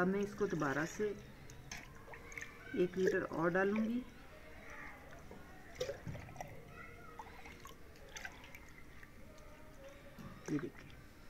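Thick liquid pours and splashes from a ladle into a pot.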